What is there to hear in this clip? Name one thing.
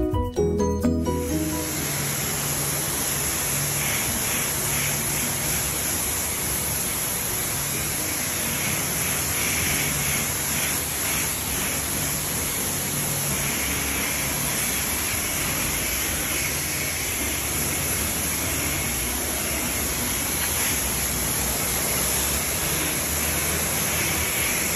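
A pressure washer sprays a loud, steady hissing jet of water.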